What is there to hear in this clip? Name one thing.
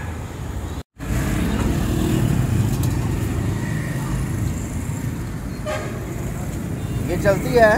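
Motorbikes rumble past on a nearby street.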